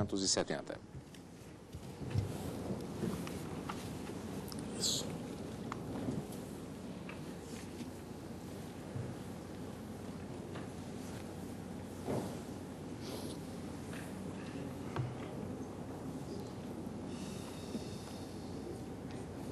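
A crowd murmurs in a large room.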